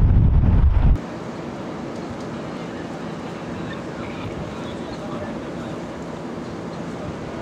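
Distant traffic hums steadily.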